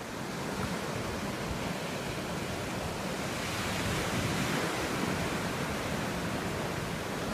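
Gentle waves wash up onto the sand and recede.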